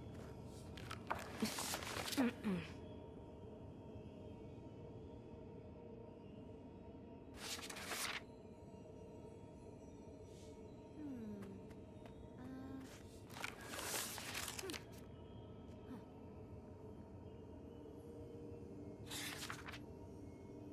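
Paper pages rustle and flip as a book is opened and leafed through.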